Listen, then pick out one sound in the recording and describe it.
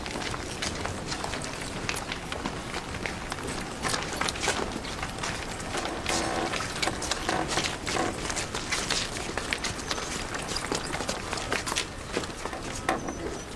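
Many footsteps shuffle along together.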